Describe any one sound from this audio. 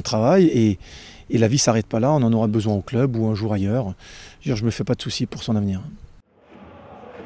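A man speaks calmly into microphones close up.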